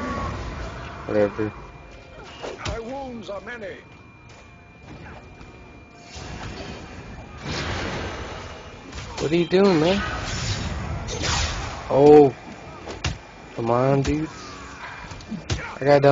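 Magic attacks whoosh and burst in quick succession.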